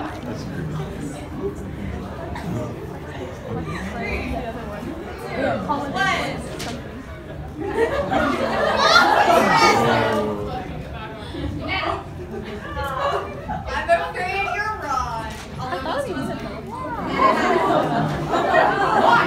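A young woman speaks with animation to a crowd.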